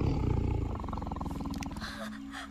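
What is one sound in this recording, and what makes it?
A tiger growls loudly.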